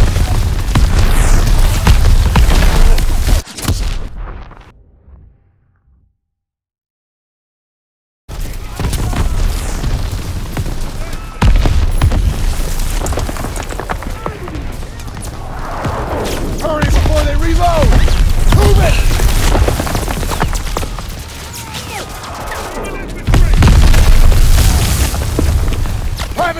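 Rifles and machine guns fire in rapid bursts.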